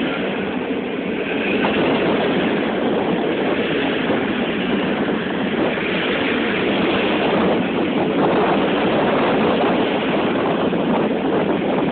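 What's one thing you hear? Passenger train carriages rumble and clatter loudly past on the rails.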